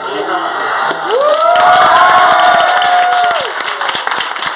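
A crowd of children and adults cheers loudly.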